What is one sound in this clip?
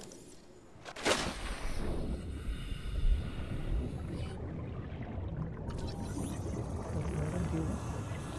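Muffled underwater rumbling and bubbling fill the surroundings.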